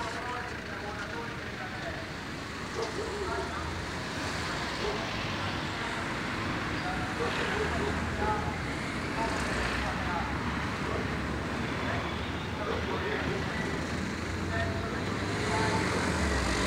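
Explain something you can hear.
A crowd murmurs and chatters outdoors at a distance.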